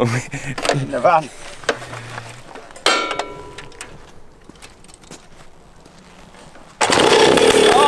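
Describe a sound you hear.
A motorbike is kick-started.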